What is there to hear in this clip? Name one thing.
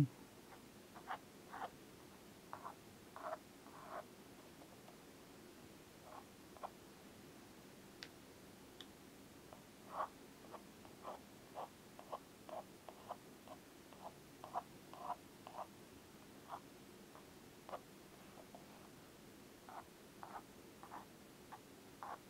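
A paintbrush taps and strokes softly on paper.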